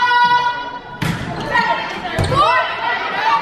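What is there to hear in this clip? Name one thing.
A volleyball is hit with a thump.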